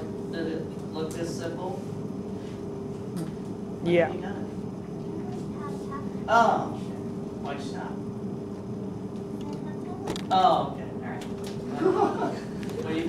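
A man speaks calmly, heard from a few steps away.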